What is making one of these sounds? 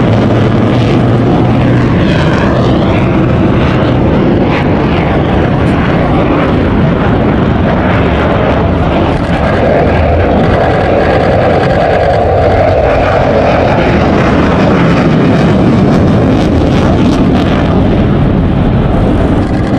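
A jet engine roars loudly overhead, rising and falling as the plane passes.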